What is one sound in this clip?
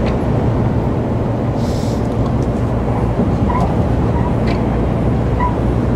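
Windscreen wipers swish once or twice.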